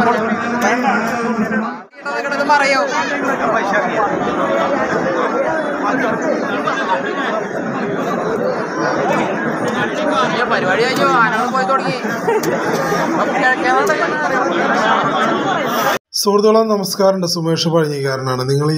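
A large outdoor crowd chatters loudly all around.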